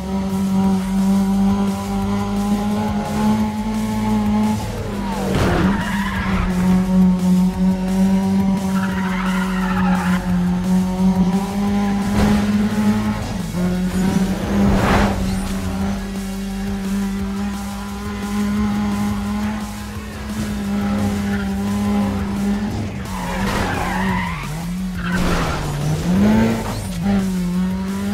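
A car engine roars at high speed, holding a steady pitch.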